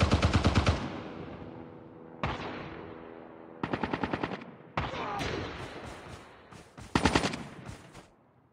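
Rapid gunfire rattles off in short bursts, echoing away.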